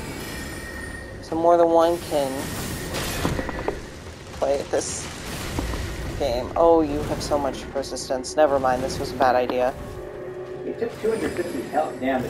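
A magic blast bursts with a rushing whoosh.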